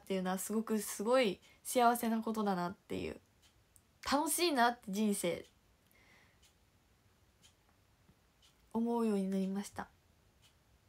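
A young woman talks animatedly and close up, in short bursts with pauses.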